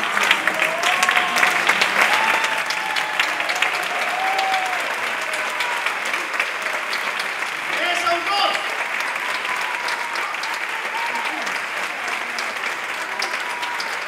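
A woman calls out with animation on stage.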